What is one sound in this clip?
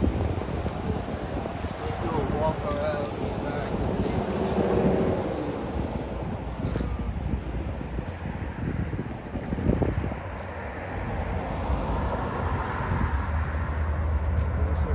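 Wind rumbles across the microphone outdoors.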